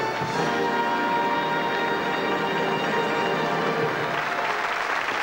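An orchestra plays a held closing chord.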